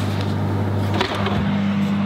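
An oven door clicks open.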